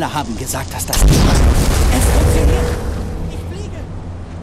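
A loud magical blast roars and rumbles.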